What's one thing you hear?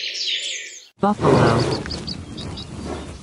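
Buffalo low loudly.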